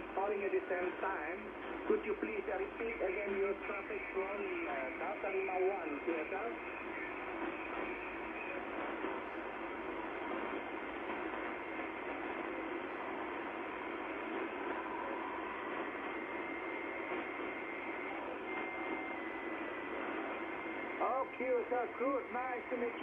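A shortwave radio hisses and crackles with static through its loudspeaker.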